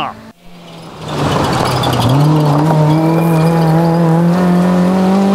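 A rally car engine roars at high revs as the car passes.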